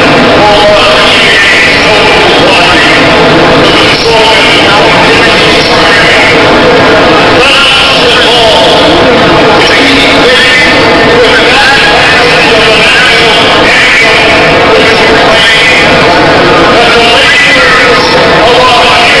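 An elderly man reads out a speech loudly through a microphone and loudspeakers.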